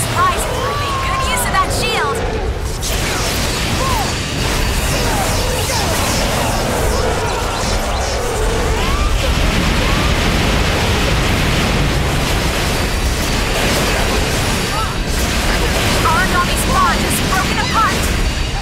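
Explosions and weapon blasts crash and roar in a video game battle.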